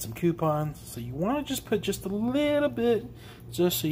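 Liquid pours into a bowl of food.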